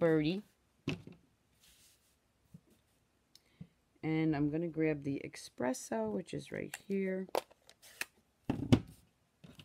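Paper cards slide and rustle across a table.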